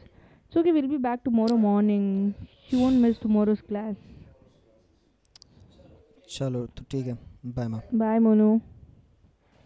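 A young man talks on a phone close by, calmly and with worry.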